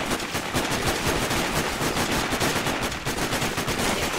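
A rifle fires a few quick shots.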